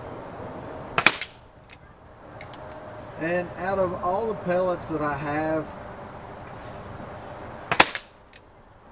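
A man fires an air rifle with sharp cracks close by.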